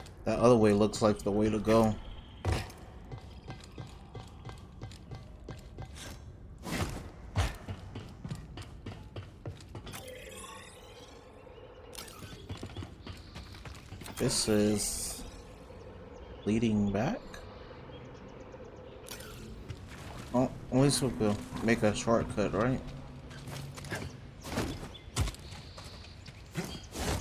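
Footsteps thud and scrape on stone and metal.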